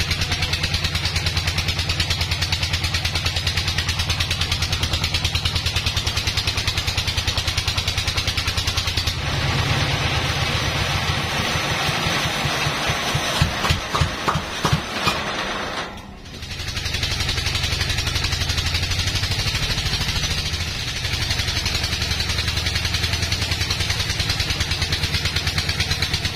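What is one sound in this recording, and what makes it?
A large band saw hums steadily as it cuts through wood.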